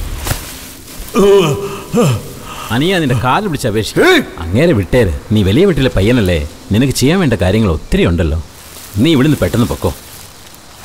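A man groans and speaks in a strained voice nearby.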